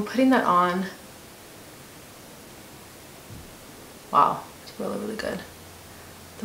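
A young woman talks calmly and close to a microphone, in short bursts.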